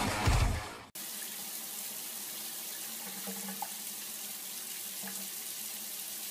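Water sprays steadily from a shower.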